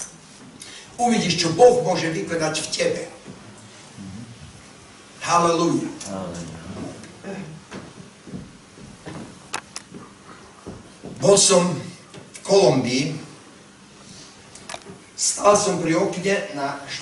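An elderly man speaks with feeling through a microphone, in bursts with pauses, in a reverberant room.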